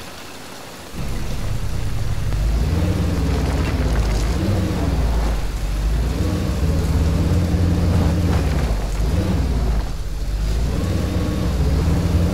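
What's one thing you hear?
A vehicle engine starts and rumbles, revving up and down.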